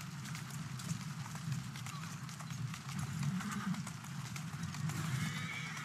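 Carriage wheels rumble over cobblestones.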